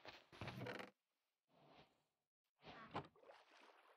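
A wooden chest creaks open and shut.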